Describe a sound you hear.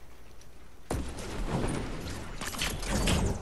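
A launch pad bursts with a loud whoosh.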